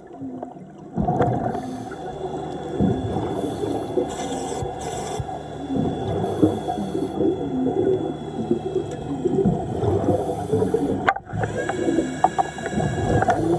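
A submarine's motor hums steadily underwater.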